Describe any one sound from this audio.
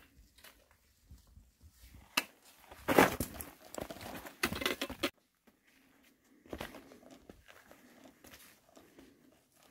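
A trekking pole taps on stones.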